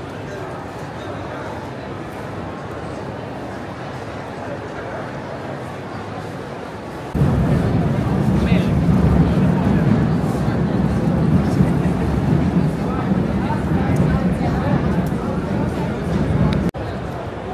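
A crowd of people chatters and murmurs in the background.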